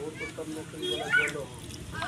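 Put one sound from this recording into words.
Water pours from a plastic cup into wet mud.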